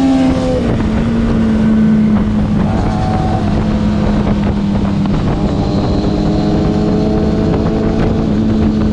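Wind rushes loudly past while riding at speed.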